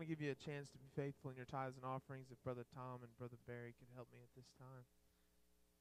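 A man speaks calmly through a microphone and loudspeakers in a large hall.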